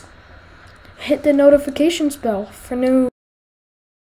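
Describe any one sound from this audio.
A teenage boy speaks close by, with animation.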